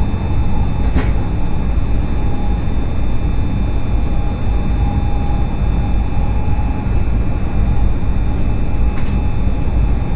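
Wheels clack over rail joints.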